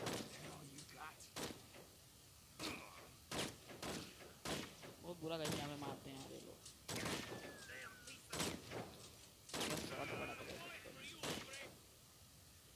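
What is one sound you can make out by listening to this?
Gunshots fire in quick bursts with a sharp echo.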